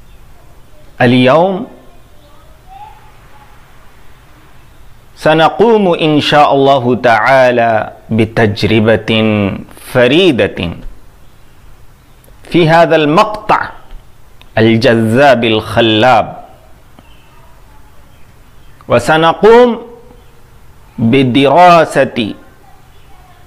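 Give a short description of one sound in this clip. A man speaks close to a microphone in measured phrases with pauses between them.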